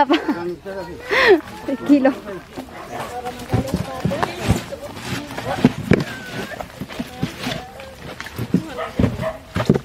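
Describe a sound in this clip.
Plastic crates knock against each other.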